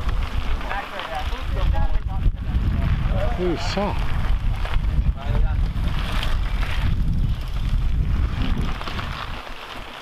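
A bicycle rushes past close by.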